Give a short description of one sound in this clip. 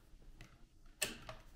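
A key card taps against a lock with a click.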